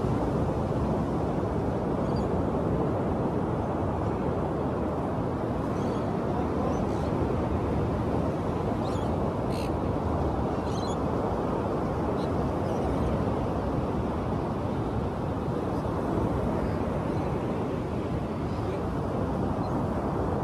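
Waves wash onto a beach steadily in the distance.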